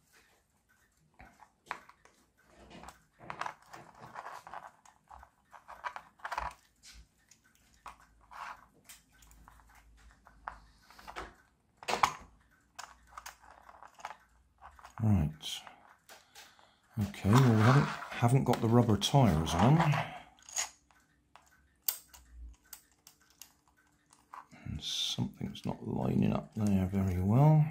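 Plastic parts click and clatter as they are fitted together by hand.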